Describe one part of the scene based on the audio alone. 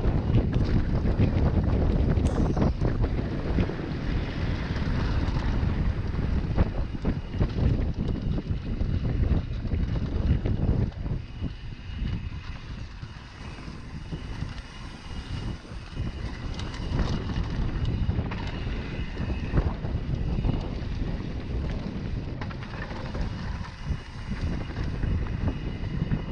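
Wind rushes and buffets loudly past the rider.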